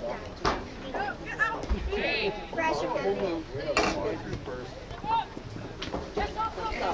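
Field hockey sticks clack sharply against a ball.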